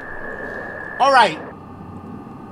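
A young man lets out a short, loud exclamation close to a microphone.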